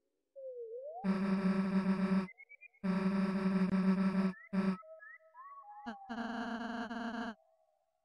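Rapid, buzzy electronic blips chatter in quick bursts, like a game's dialogue text ticking out.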